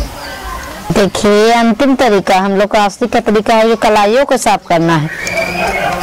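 A woman speaks loudly with a rising and falling, sing-song voice.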